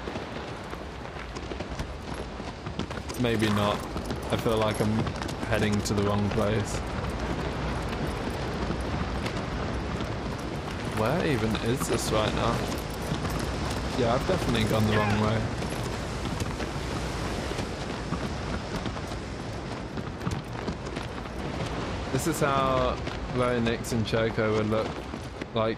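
A horse gallops with rapid hoofbeats.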